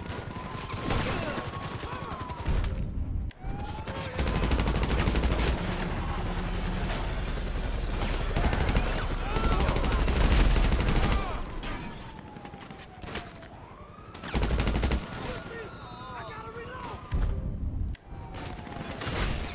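Sirens wail nearby.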